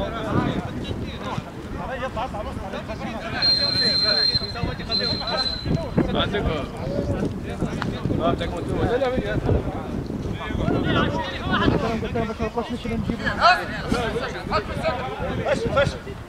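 Men shout and call out to each other outdoors across an open pitch.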